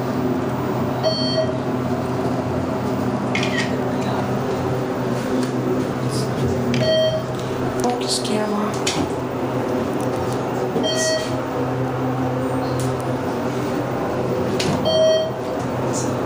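An elevator chime dings at each floor.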